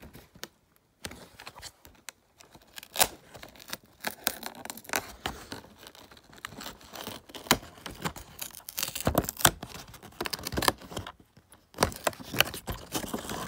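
Fingers scratch and rustle against cardboard, which crinkles and tears.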